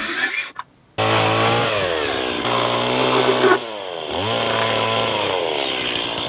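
A power tool whirs, winding down and revving up again.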